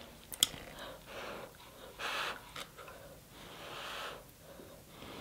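A young woman slurps sauce close to a microphone.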